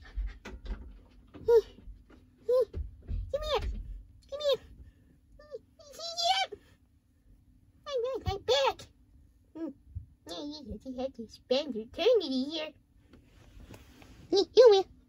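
A young child talks in playful, sing-song voices close by.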